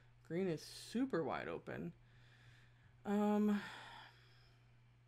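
A woman speaks briefly and animatedly into a microphone.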